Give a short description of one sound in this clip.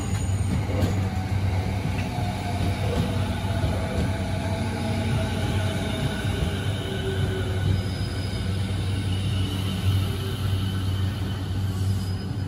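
An electric commuter train's motors whine with rising pitch as it pulls away.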